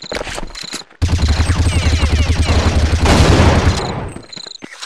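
A rifle fires a rapid, loud burst of shots.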